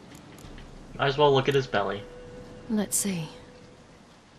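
A young woman speaks quietly and thoughtfully, close up.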